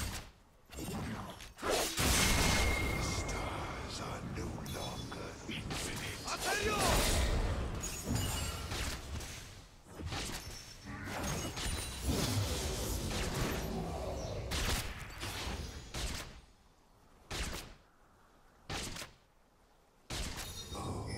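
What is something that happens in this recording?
A young man talks with animation into a microphone.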